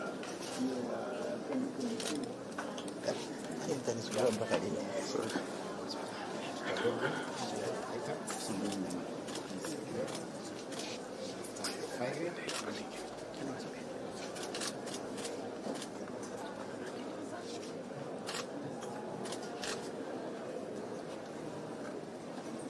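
Men and women murmur in conversation nearby.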